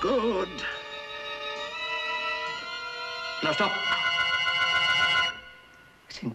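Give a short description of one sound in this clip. An older man sings in long, drawn-out notes.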